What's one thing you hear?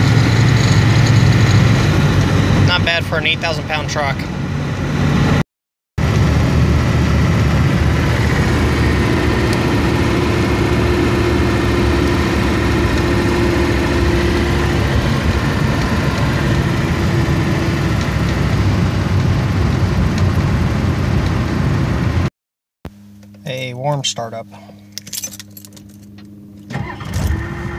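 A diesel engine drones steadily, heard from inside a moving vehicle.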